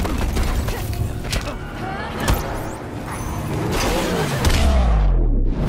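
Heavy blows land with loud thuds and crashes.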